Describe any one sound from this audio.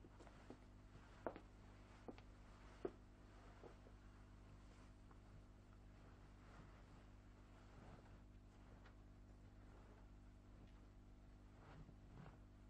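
Heavy cloth rustles.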